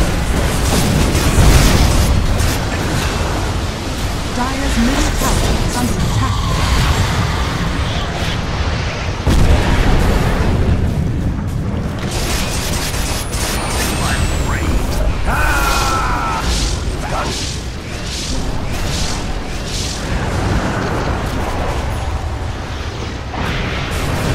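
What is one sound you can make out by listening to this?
Magic spells blast and crackle in a game battle.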